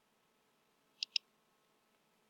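Two quick, sharp clicks sound as a game menu option is chosen.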